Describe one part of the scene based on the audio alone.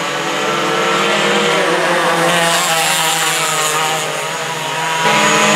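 Go-kart engines whine loudly as karts race past and fade.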